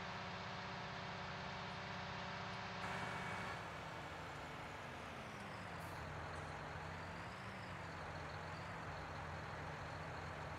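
A tractor engine hums steadily and changes pitch as it drives.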